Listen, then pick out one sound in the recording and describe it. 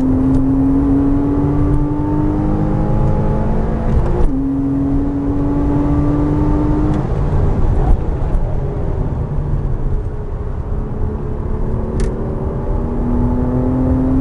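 A race car engine roars loudly close by, rising in pitch and dropping at each gear change.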